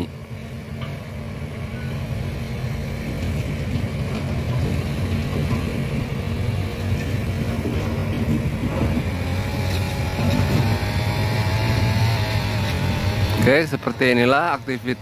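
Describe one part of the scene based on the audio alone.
An excavator engine rumbles steadily in the distance.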